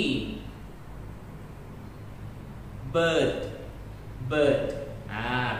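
A young man speaks clearly and slowly into a close microphone, pausing between words.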